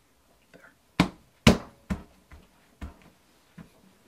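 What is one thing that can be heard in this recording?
A hand thumps down on a flat surface.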